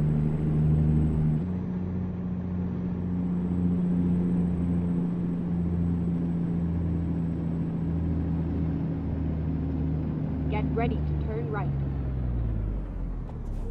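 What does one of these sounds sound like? A truck engine drones steadily, then winds down.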